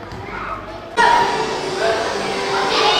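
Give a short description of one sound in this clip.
Children's voices shout and chatter, echoing loudly indoors.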